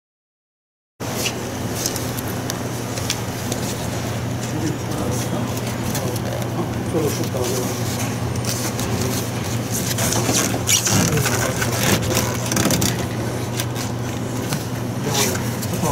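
Plastic parts click and rustle as gloved hands handle wire connectors.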